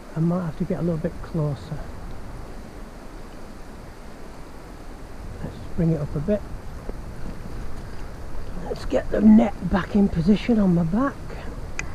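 A shallow river babbles steadily over stones.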